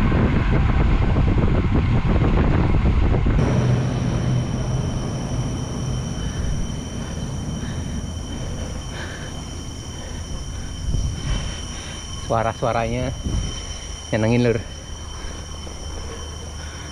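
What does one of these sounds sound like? Wind rushes and buffets loudly against a microphone.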